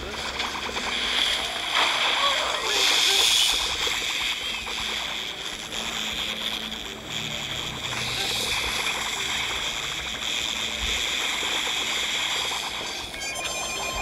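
Game battle effects crackle and burst rapidly.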